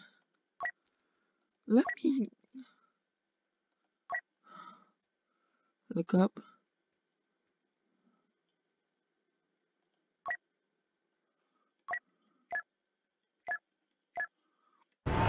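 Soft clicks sound as menu options are selected.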